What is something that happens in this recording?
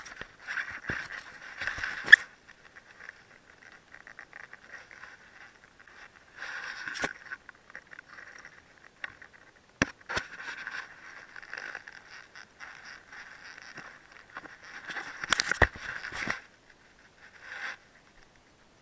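Leaves rustle and brush against a climber close by.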